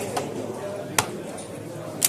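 A game clock button clicks once.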